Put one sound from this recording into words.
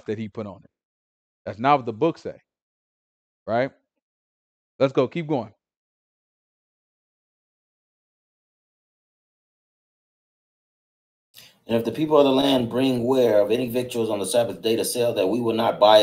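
A man speaks calmly into a headset microphone, in short bursts with pauses.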